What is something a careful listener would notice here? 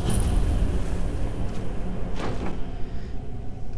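Wind howls through falling snow.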